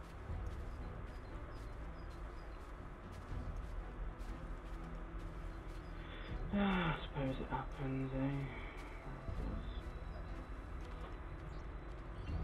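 Footsteps crunch softly over grass and dirt at a steady walking pace.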